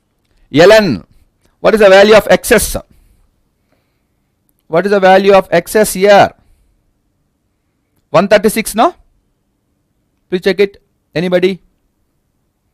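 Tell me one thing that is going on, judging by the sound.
A man speaks calmly and clearly into a microphone, in short bursts with pauses.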